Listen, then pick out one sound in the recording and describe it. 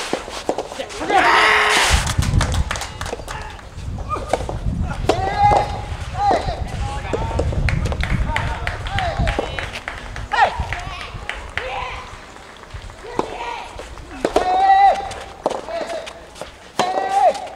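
A tennis ball is struck with a racket, with sharp pops outdoors.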